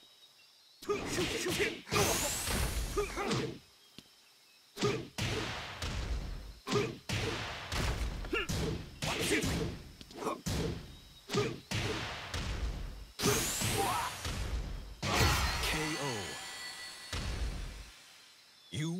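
Punches and kicks land with loud smacks and thuds.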